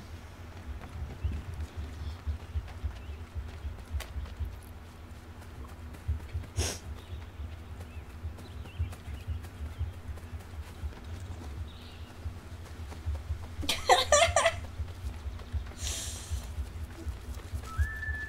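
Footsteps run quickly over grass and soft ground.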